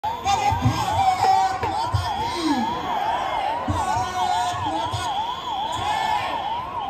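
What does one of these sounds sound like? A large crowd murmurs and shouts outdoors.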